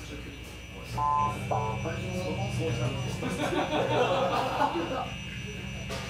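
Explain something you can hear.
An electric guitar plays notes.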